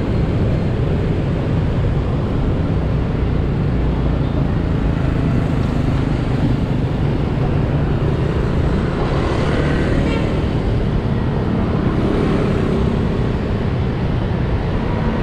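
A motorbike engine hums steadily close by as it rides along.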